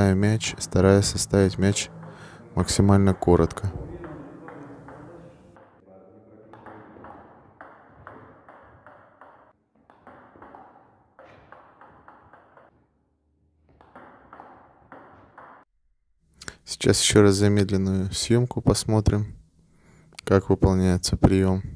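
A table tennis ball clicks against a paddle.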